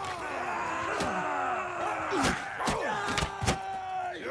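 Metal weapons clash in a close fight.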